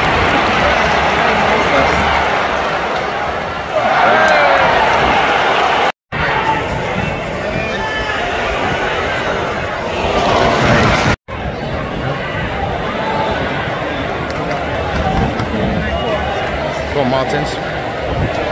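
A large stadium crowd roars and chants loudly outdoors.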